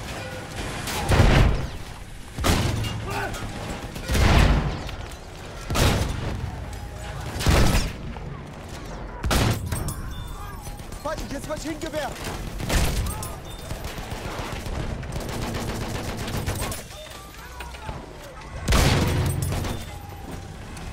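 Explosions blast and rumble nearby.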